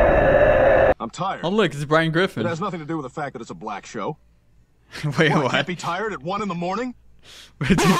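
A young man chuckles and talks softly close to a microphone.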